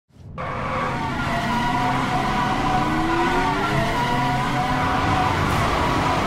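Tyres screech and squeal on asphalt during a burnout.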